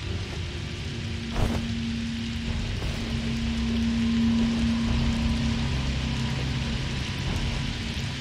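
Flames crackle softly.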